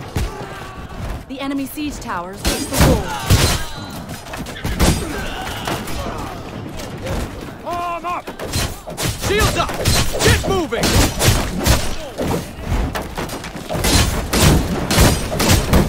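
Swords clash and strike armour rapidly in a battle.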